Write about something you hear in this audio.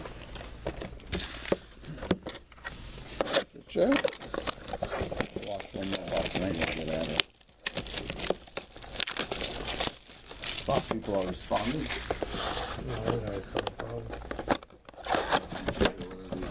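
A cardboard box rubs and taps against fingers.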